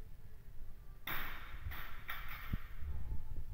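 A loaded barbell is dropped onto a rubber floor.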